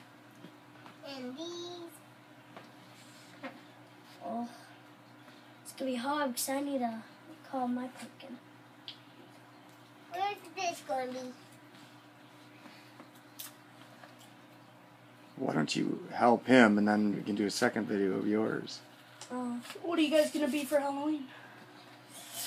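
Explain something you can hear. A young boy talks nearby.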